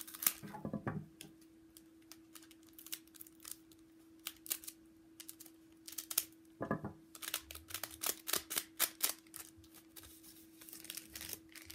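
A foil wrapper crinkles and rustles in someone's hands.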